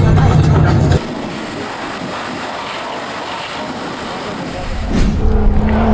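A pressure washer hisses as it sprays water.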